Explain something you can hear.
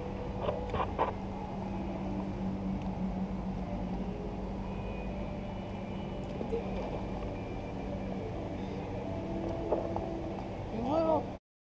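Water laps gently against a float tube.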